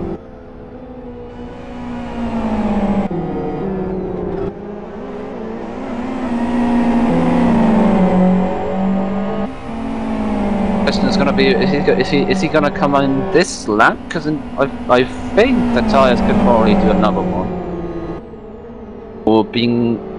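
Racing car engines roar and rev as cars speed past.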